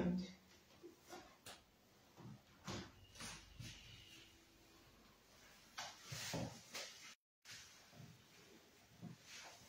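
Footsteps shuffle and small objects clink.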